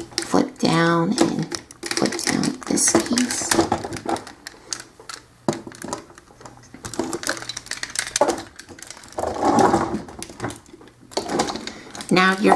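Plastic toy parts click and clack as they are handled.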